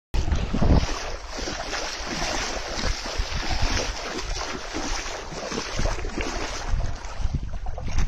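Water splashes as a man wades through shallow water.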